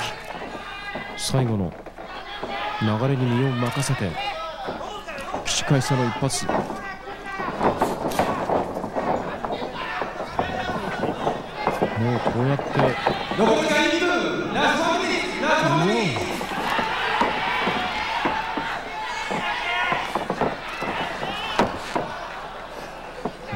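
A crowd of men shouts and cheers loudly in a large echoing hall.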